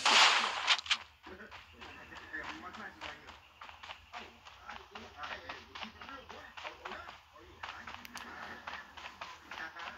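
A boy talks close to a microphone with animation.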